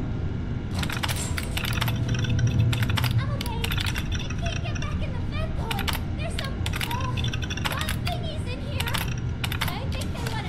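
Old computer keys clatter in quick bursts.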